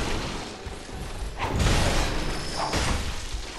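A large creature grunts and growls.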